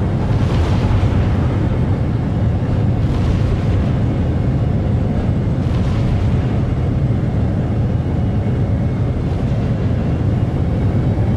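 Laser cannons fire in a rapid, steady stream.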